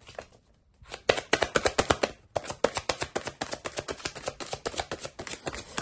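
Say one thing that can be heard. Playing cards are shuffled with quick, dry flicks.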